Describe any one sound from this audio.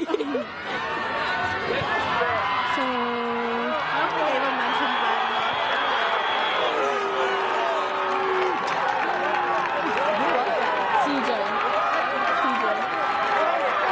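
A crowd of young men and women shouts and cheers outdoors.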